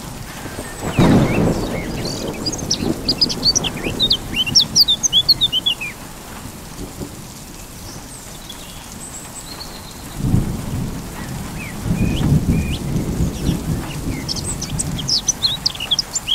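Thunder rumbles in the distance.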